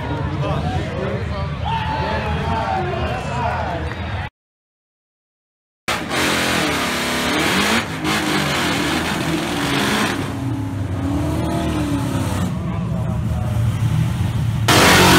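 A crowd cheers and shouts outdoors.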